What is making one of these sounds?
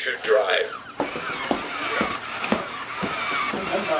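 A toy robot's plastic feet thump steadily on a hard floor.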